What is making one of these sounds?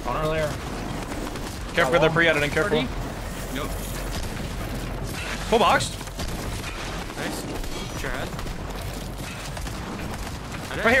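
A young man speaks with animation, close into a microphone, in short bursts.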